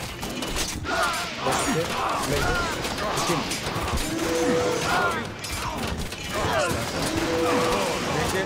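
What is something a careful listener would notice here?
Lightning cracks loudly in a game.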